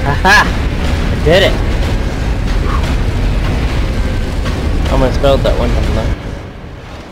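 A heavy lift rumbles as it moves.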